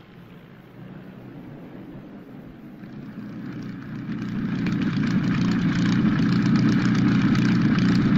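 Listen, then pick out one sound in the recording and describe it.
A propeller plane's engine roars as it starts up.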